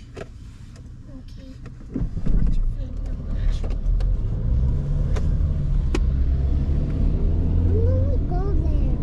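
A car engine rumbles low, growing louder as the car pulls away.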